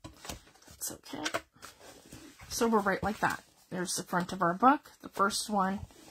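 Paper rustles as a large sheet is turned over.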